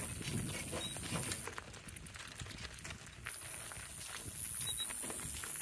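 A harness and cart creak and rattle.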